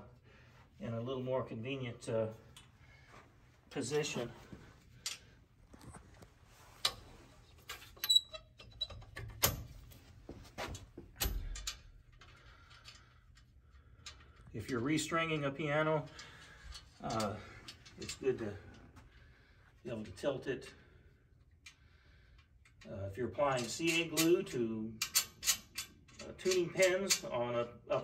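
A metal frame clanks and rattles as it is handled.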